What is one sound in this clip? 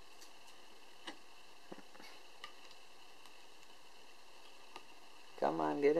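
A small plastic part clicks softly into place.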